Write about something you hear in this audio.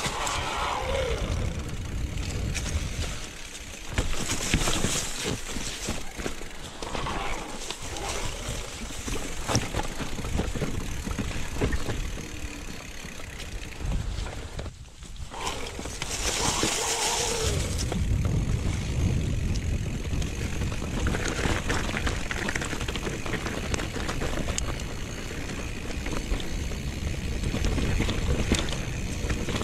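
Bike tyres crunch and rattle over a rocky dirt trail.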